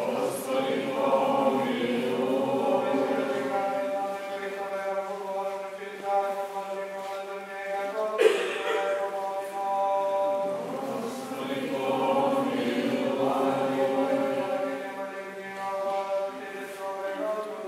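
A man chants slowly in a resonant, echoing room.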